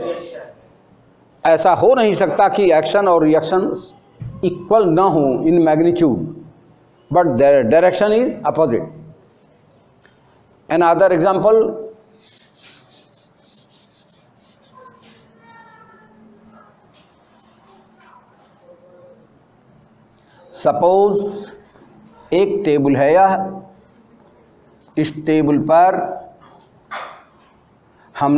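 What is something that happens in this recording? An elderly man lectures in a calm, steady voice close by.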